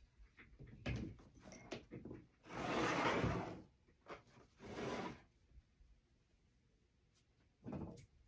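Wooden pieces clack together as they are handled.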